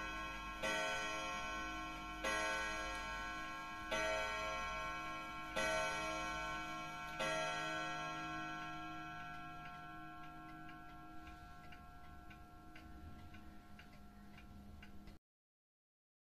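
A wall clock ticks steadily.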